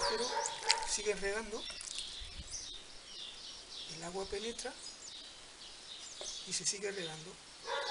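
Water pours from a watering can onto soil.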